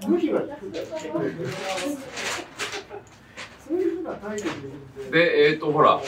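Small shears snip twigs.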